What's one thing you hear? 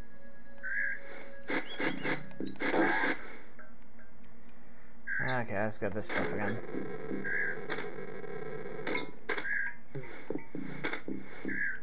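Game music plays with bright beeping tones.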